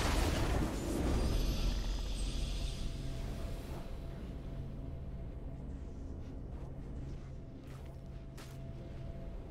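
A triumphant game fanfare swells.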